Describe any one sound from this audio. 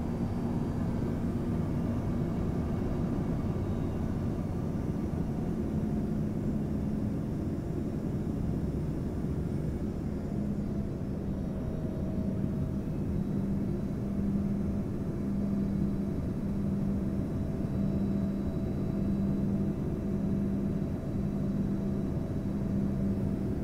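Air rushes past an airplane's cabin with a low roar.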